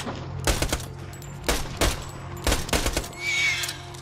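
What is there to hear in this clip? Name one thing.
A rifle fires a series of sharp shots.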